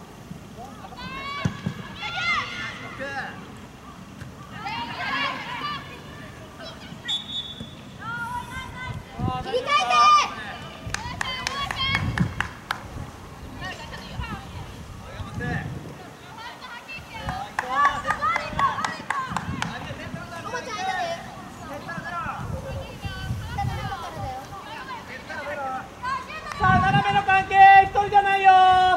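Young women shout and call out to each other outdoors, some way off.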